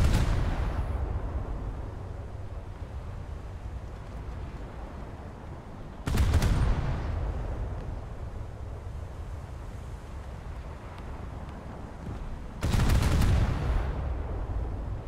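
Heavy naval guns fire in loud, booming blasts that rumble away.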